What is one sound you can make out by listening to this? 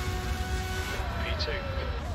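A racing car engine drops in pitch as the car slows near the end.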